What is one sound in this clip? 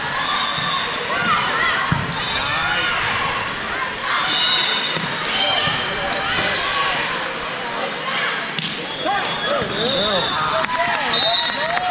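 A volleyball smacks against a player's hands.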